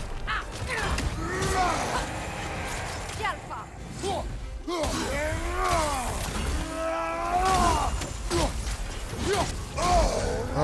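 A giant creature roars loudly.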